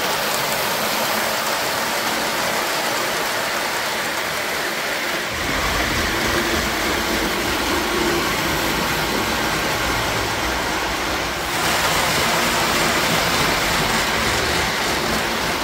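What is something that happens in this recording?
A model train rumbles and clatters along metal tracks.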